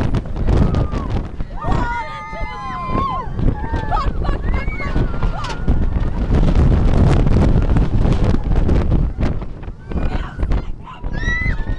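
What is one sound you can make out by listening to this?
Young riders scream loudly close by.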